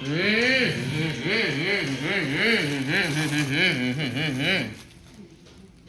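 A child makes loud revving engine noises with the voice.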